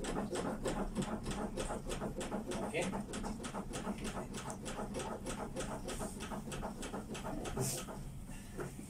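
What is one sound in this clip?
A training manikin clicks in a quick, steady rhythm under chest compressions.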